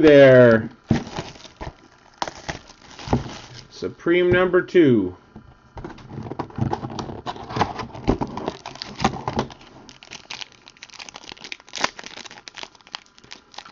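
Hands tear and crinkle a plastic wrapper.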